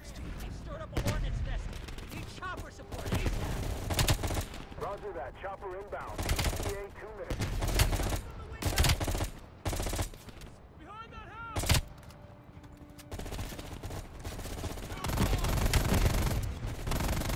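Rifle shots fire in rapid bursts, loud and close.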